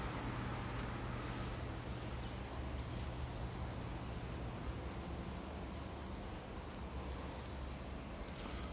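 A shallow creek trickles over rocks.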